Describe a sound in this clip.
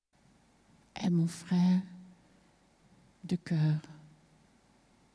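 A woman sings short, drawn-out notes through a microphone.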